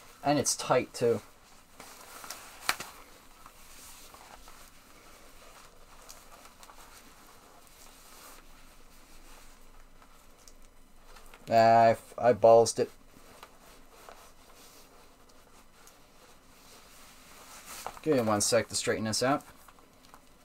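A small wind instrument plays short bursts of notes, close by.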